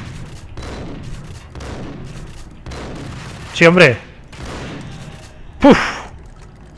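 Shotgun blasts boom and echo in quick succession.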